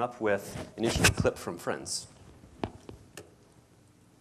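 A man speaks into a microphone in a large room.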